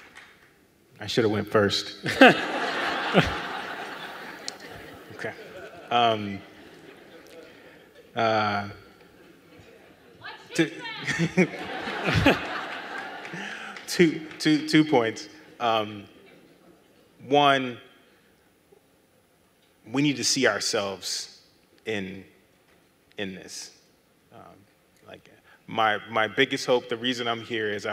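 A man speaks calmly through a microphone, with short pauses.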